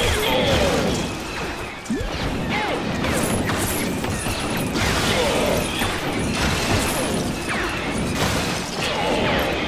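Small plastic pieces clatter and scatter as objects burst apart.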